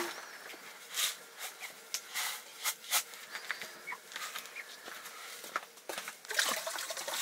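A metal pot clinks and knocks.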